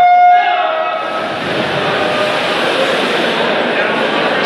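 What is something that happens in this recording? Swimmers splash into the water.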